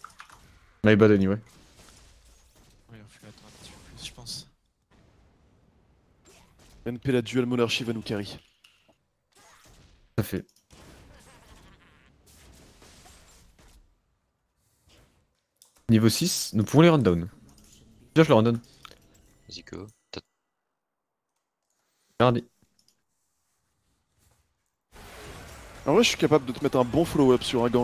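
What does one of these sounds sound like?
A young man talks with animation into a microphone, heard up close.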